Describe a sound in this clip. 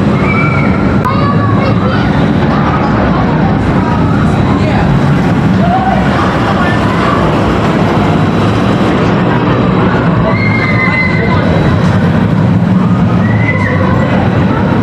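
Riders scream on a roller coaster.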